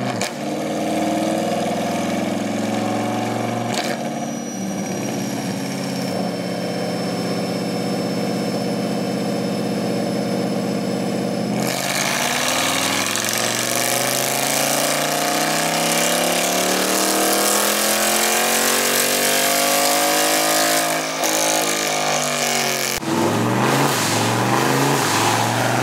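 A car engine runs loudly, holding steady and then rising and falling in pitch as it revs.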